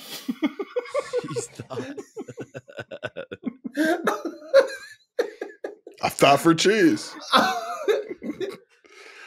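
Several men laugh heartily over an online call.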